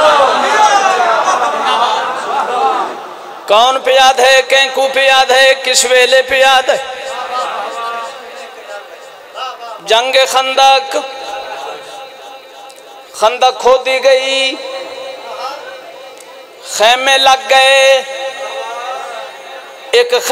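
A man chants loudly and passionately through a microphone, in bursts with reverberation in an echoing space.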